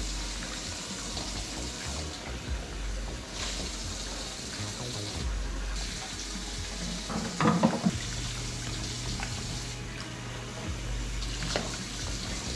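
Dishes clink and knock against each other.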